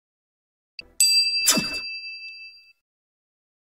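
A small bell rings brightly and fades.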